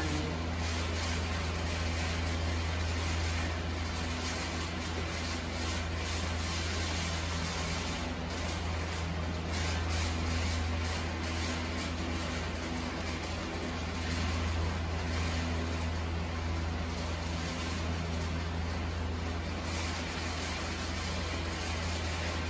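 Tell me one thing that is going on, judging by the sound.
A wooden spatula scrapes and tosses food in a pan.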